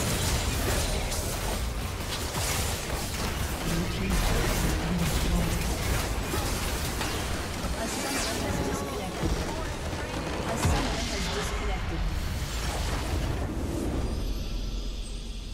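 Magic blasts and clashing fight sounds crackle and boom in a dense burst.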